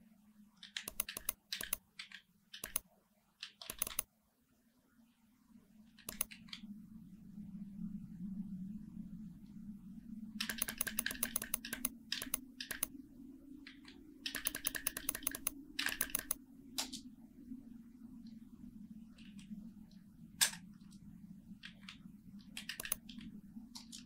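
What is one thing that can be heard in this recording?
Short clicking ticks sound in quick bursts as a number dial is turned.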